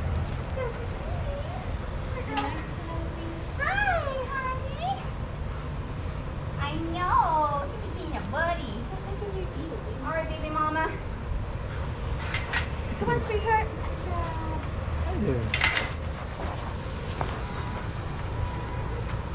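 Dogs scuffle and pad about on sandy ground.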